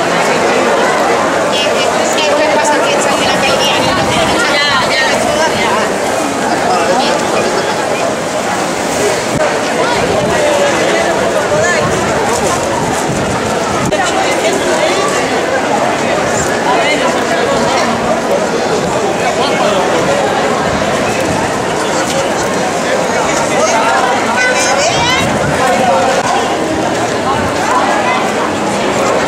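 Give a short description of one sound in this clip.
Rain patters on umbrellas.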